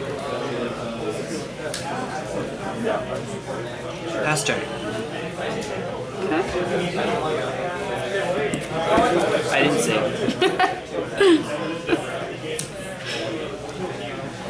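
Playing cards flick and shuffle in hands.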